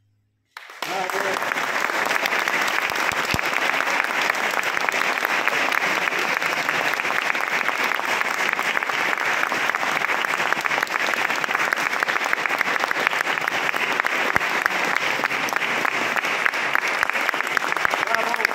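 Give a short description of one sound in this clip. Hands clap in steady applause in a large echoing hall.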